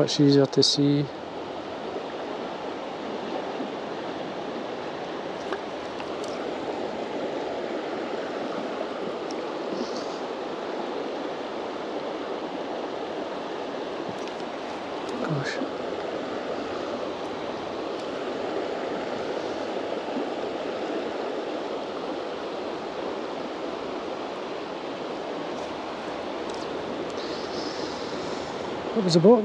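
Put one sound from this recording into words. A river rushes and ripples steadily outdoors.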